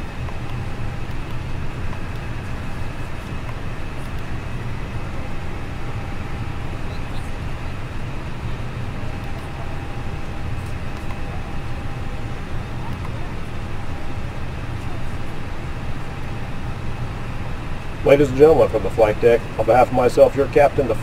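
A steady low hum fills a jet airliner's cockpit in flight.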